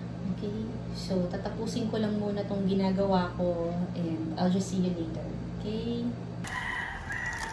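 A young woman talks close to the microphone in a calm, chatty way.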